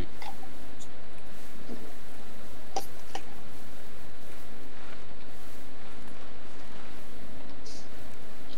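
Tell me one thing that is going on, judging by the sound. Grass rustles softly as someone crawls through it.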